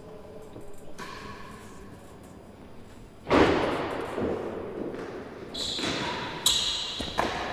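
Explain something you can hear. A ball thuds against a wall.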